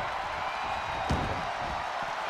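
A heavy body thuds onto a wrestling mat.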